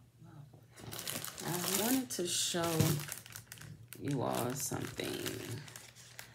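A plastic bag crinkles as hands handle it.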